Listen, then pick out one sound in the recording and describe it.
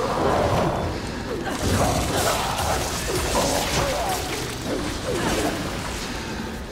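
Blades slash and strike in a fierce fight.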